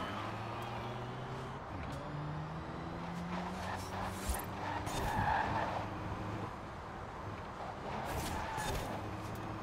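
A sports car engine roars at high speed, with quick gear shifts.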